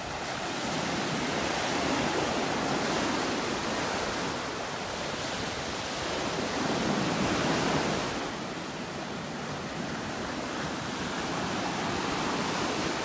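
Small waves break and wash up onto the shore in a steady, swelling rush.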